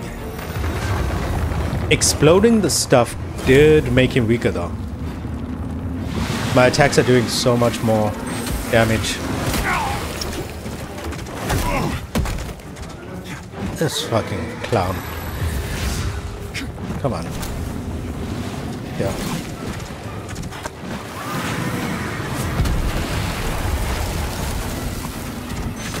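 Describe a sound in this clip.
Magic blasts crackle and roar.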